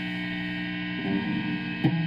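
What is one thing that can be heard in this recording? An electric guitar is strummed briefly.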